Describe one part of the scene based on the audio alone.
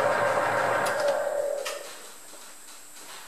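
A lathe winds down to a stop.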